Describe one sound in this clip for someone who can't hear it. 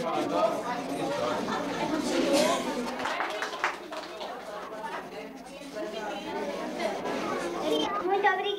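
Young girls chatter and talk over one another nearby.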